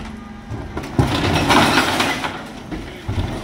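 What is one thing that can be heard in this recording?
Rubbish tumbles into the back of a refuse truck.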